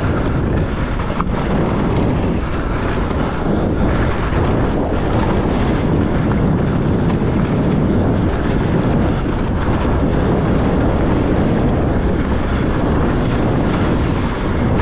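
Bicycle tyres roll and rattle over a bumpy dirt trail.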